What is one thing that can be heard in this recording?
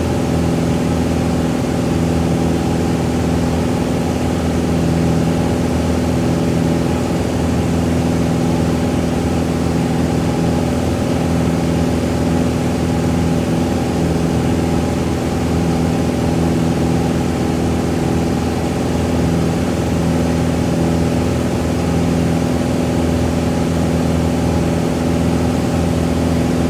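A small plane's propeller engine drones loudly and steadily from inside the cabin.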